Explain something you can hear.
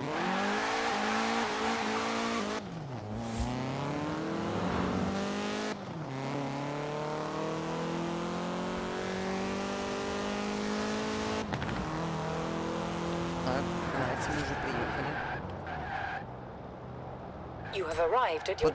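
A car engine revs hard, rising in pitch and dropping with each gear change.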